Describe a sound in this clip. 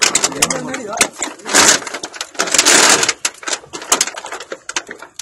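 A metal chain clinks and rattles.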